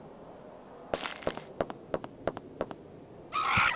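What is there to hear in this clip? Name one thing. Footsteps run on concrete.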